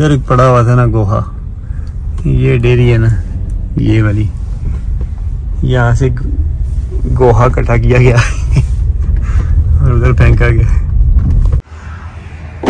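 A car engine hums while driving.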